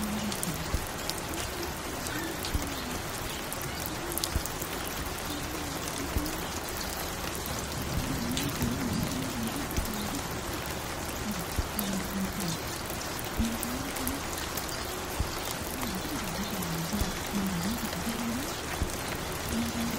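Soft music plays from a record player.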